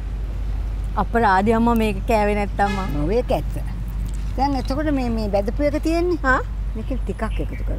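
A woman speaks warmly into a clip-on microphone, close by.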